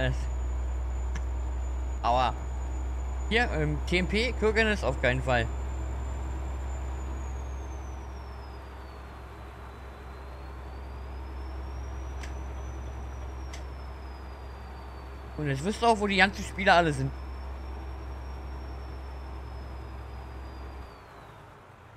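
A truck engine hums steadily at low pitch.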